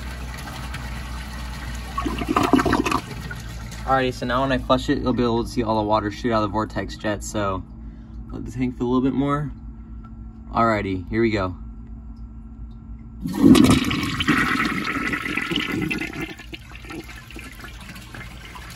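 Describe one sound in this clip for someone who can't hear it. Water swirls and gurgles as a toilet flushes.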